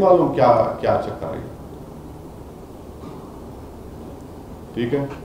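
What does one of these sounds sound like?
A middle-aged man speaks calmly into a microphone, pausing briefly.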